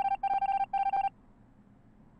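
Short electronic beeps sound three times in quick succession.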